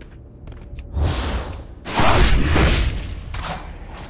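A magic spell bursts with a loud rushing whoosh.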